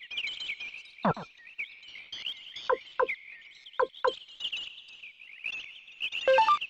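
Short electronic menu blips sound several times.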